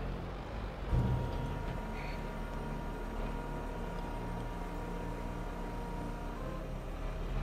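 Grain pours into a trailer with a steady rushing.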